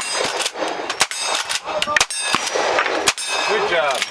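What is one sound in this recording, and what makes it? Rifle shots crack loudly outdoors, one after another.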